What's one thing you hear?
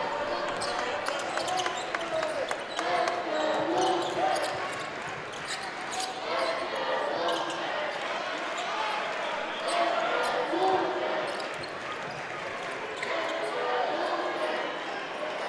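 A large indoor crowd murmurs and cheers in an echoing arena.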